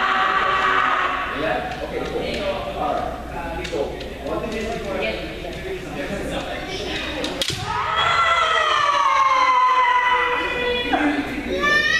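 Men shout long, loud cries in a large echoing hall.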